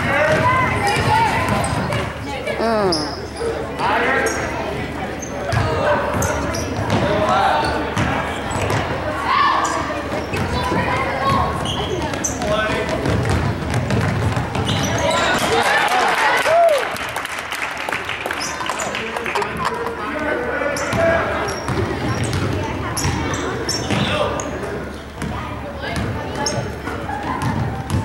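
Spectators shout and cheer in an echoing gym.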